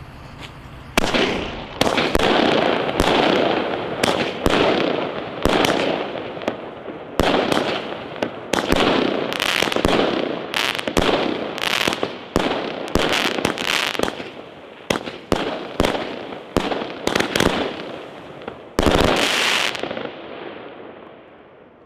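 Fireworks crackle and fizzle as sparks fall.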